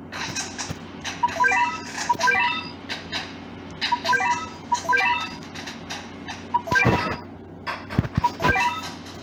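Short bright electronic chimes sound again and again.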